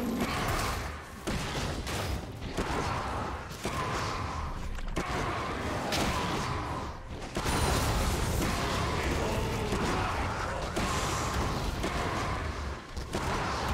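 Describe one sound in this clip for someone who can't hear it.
Magic spells and blows crackle and thud in a fast fight.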